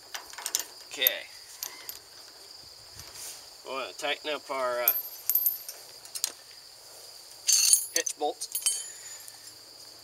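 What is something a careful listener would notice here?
A steel chain rattles and clinks.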